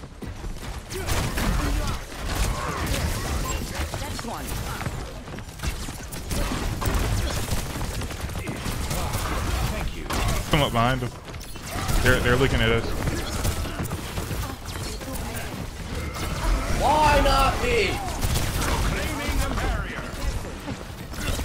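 Grenades burst with dull booms.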